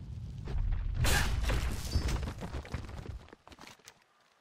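A stone creature crumbles into rubble with a crash.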